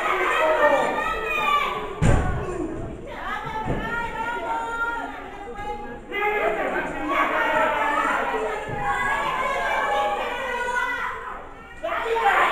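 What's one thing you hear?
A crowd of spectators shouts and cheers loudly in an echoing hall.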